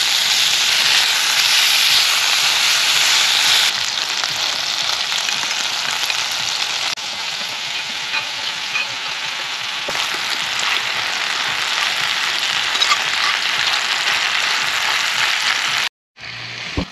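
Meat sizzles loudly in a hot pot.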